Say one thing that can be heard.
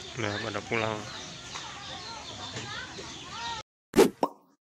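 Young children chatter and call out nearby outdoors.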